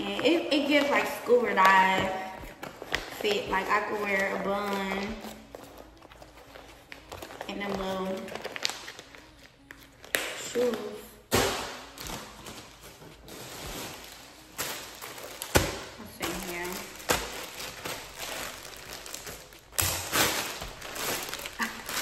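A plastic bag crinkles in a young woman's hands.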